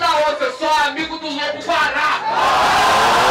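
A young man raps loudly into a microphone.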